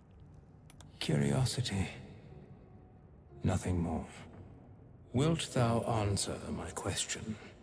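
A young man talks calmly into a microphone, close by.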